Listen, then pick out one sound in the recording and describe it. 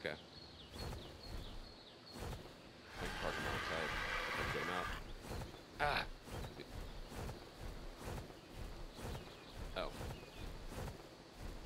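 Large wings flap in rhythmic beats.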